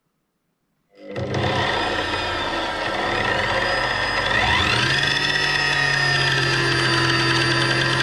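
An electric motor starts, hums steadily, then speeds up to a higher whine.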